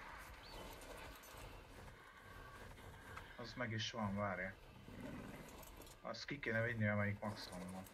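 Large wings flap heavily.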